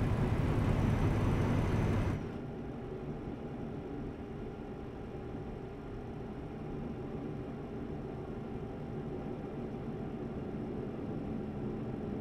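A truck engine hums steadily, heard from inside the cab.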